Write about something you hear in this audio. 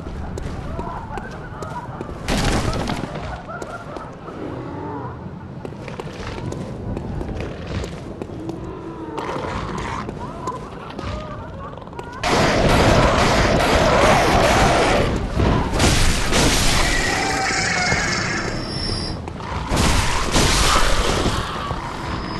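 Footsteps clatter on cobblestones.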